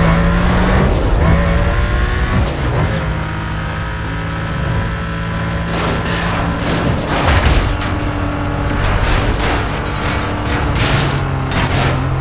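A racing car engine roars at high revs, rising in pitch and dropping with each gear shift.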